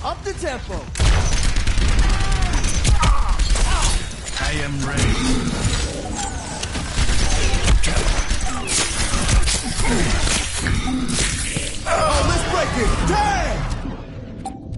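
Rapid gunfire rattles in a fast exchange of shots.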